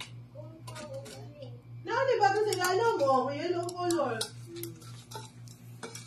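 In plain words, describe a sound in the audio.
Metal tongs clink against a plate.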